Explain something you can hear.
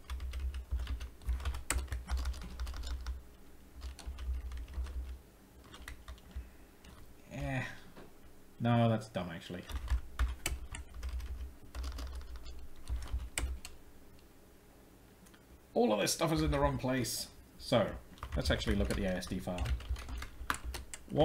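Keyboard keys click in quick, uneven runs.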